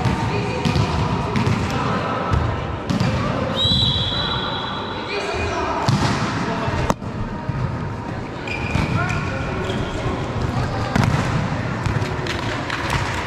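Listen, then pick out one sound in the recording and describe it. Young men talk and call out to each other in a large echoing hall.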